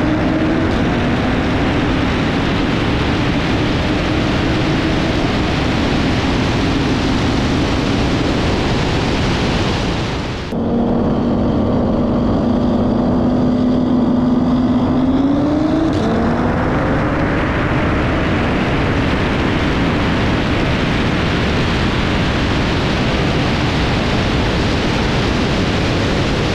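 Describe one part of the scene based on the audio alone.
Wind roars loudly past at high speed.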